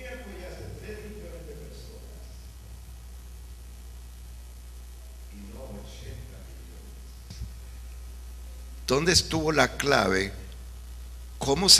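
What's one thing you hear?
An older man speaks with animation through a microphone.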